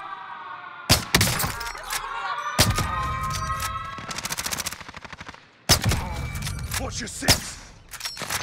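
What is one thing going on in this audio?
A sniper rifle fires sharp single shots.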